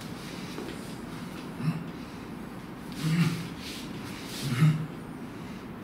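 Hands slap against forearms.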